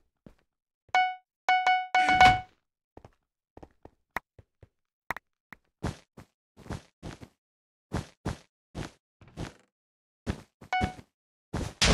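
Short bright chimes ring for each purchase.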